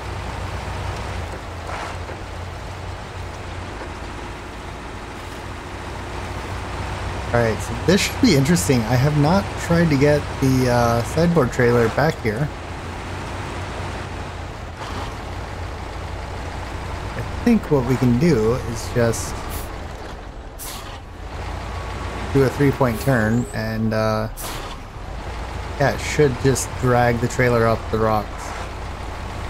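Tyres crunch over rough rocky ground.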